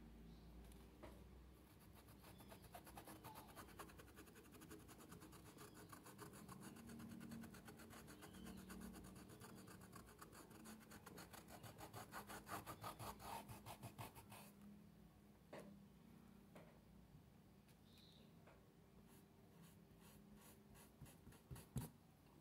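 A stiff paintbrush dabs rapidly on cloth.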